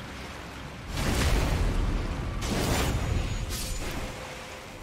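A weapon strikes with heavy thuds and clashes.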